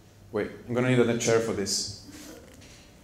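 A young man speaks into a microphone.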